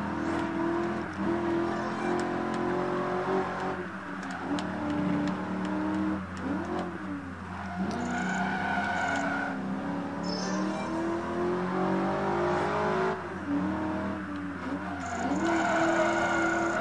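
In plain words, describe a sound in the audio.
A racing car engine roars and revs, dropping in pitch at each gear change.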